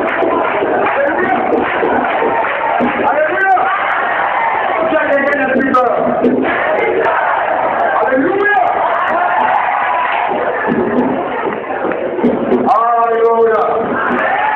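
A man preaches loudly with passion through a microphone and loudspeakers.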